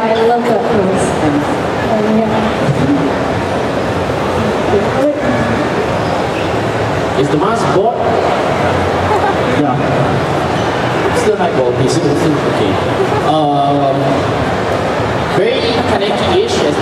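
A young man speaks into a microphone, heard through loudspeakers in a large echoing hall.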